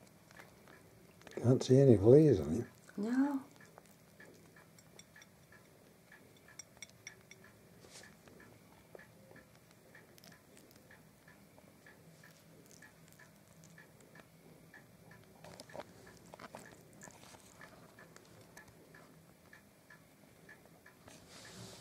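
A hedgehog snuffles and sniffs.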